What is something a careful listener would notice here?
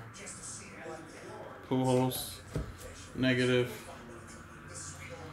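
Trading cards slide and flick against each other in a hand.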